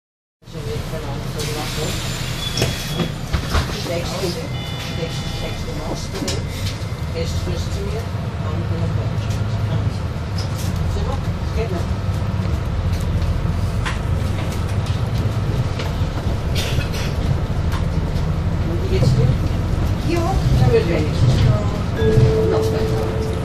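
The bus interior rattles and clicks over the road.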